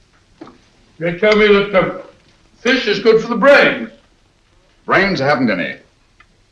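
A man speaks crisply and clearly, close by.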